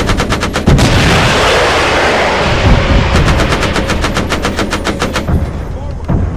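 Heavy twin guns fire in rapid bursts.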